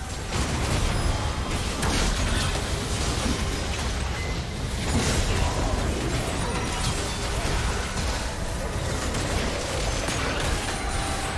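Spell blasts and battle effects crackle and boom in quick succession.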